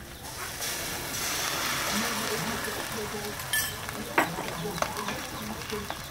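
Oil sizzles and crackles in a hot pot.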